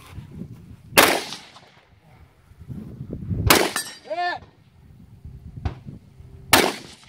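A rifle fires single loud shots outdoors, each cracking and echoing.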